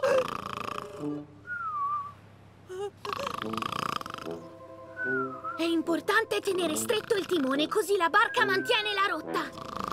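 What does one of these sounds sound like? An elderly man snores loudly.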